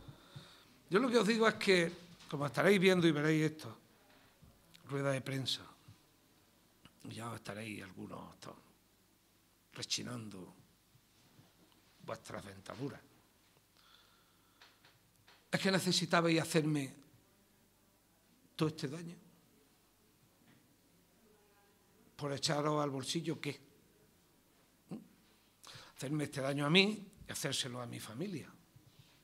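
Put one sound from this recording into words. A middle-aged man speaks calmly into microphones, pausing between phrases.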